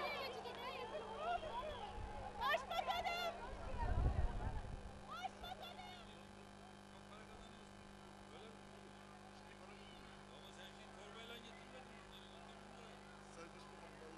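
A crowd chatters and murmurs outdoors.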